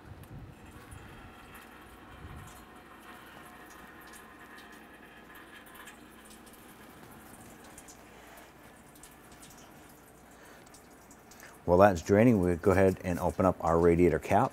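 Coolant trickles and splashes into a pan below.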